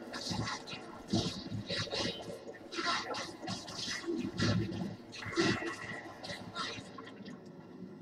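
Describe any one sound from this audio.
Swords clash and magic blasts strike in quick bursts.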